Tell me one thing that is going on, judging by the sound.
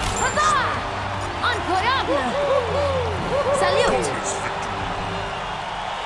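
Game sound effects chime during a battle.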